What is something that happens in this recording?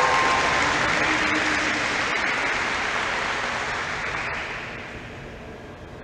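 A large crowd outdoors cheers and applauds, then dies away.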